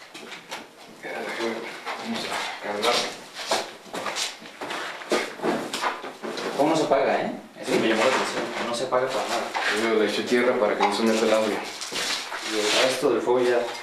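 Young men talk quietly and excitedly close by.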